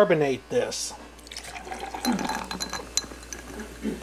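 Fizzy juice glugs as it pours into a glass.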